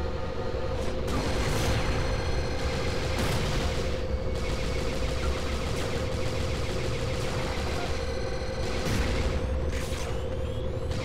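Gunshots from a video game ring out in bursts.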